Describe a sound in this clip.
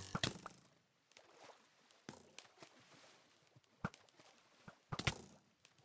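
Water splashes in short bursts.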